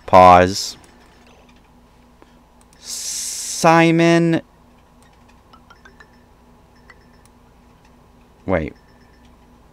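Short electronic chimes and swooshes sound as game menus open.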